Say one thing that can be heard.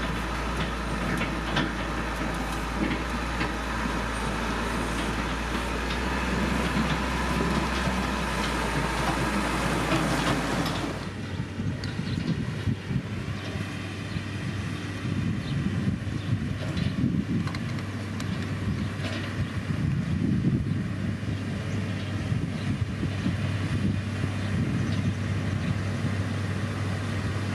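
A grader blade scrapes and pushes dirt and stones.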